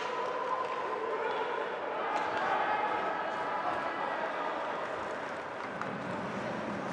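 Skates scrape and glide across the ice.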